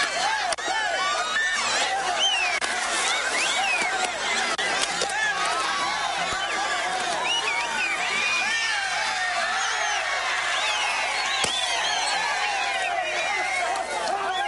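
A large crowd of men and women cheers and shouts loudly outdoors.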